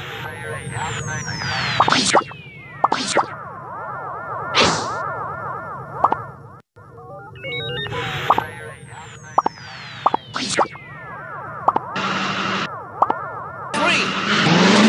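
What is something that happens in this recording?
Menu buttons click and chime.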